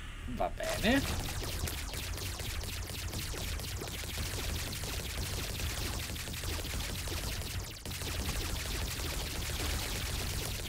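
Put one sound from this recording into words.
Rapid video game shooting effects patter steadily.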